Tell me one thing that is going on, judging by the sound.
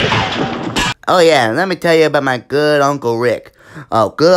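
A high cartoon voice speaks with animation.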